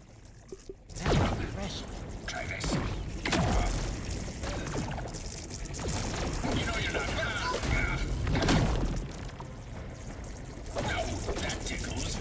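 Electric blasts crackle and zap in quick bursts.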